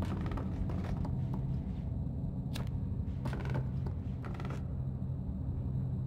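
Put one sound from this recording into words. Small footsteps patter on a wooden floor.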